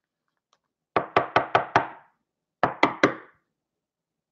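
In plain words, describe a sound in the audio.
Hard plastic cases click and tap together.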